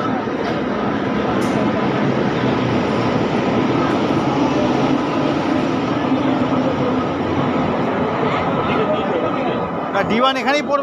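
A train engine hums steadily nearby.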